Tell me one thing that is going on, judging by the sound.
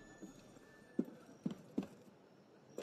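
Footsteps thud on a tiled roof.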